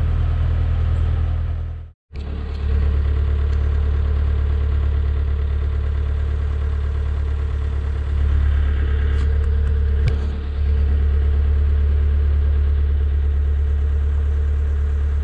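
A boat engine chugs steadily and low.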